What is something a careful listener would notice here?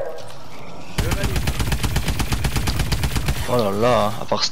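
A rifle fires rapidly.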